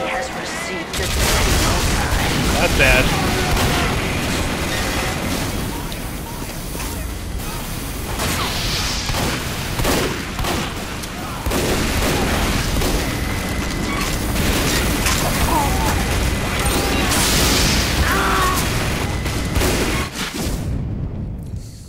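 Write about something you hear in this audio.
Guns fire rapidly in a noisy battle.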